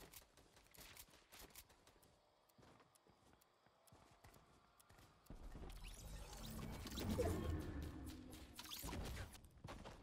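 Wooden panels snap into place with quick, sharp clacks.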